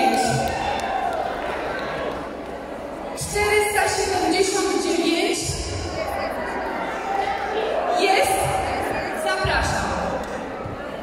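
A man shouts out calls over the crowd.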